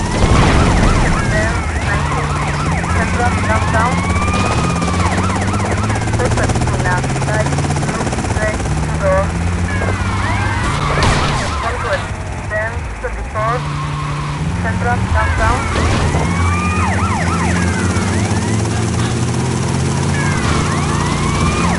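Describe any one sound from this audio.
A truck engine drones and shifts up through its gears as it drives.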